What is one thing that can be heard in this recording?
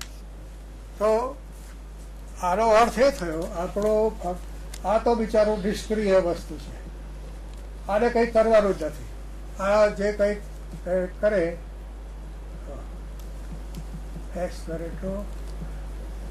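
An elderly man speaks calmly and clearly, as if lecturing, through a microphone.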